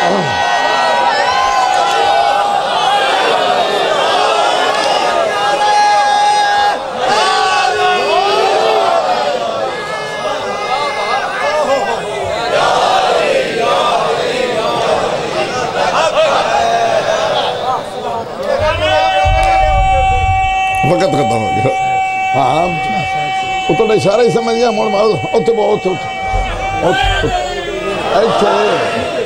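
A man speaks with emotion through a loudspeaker, echoing loudly.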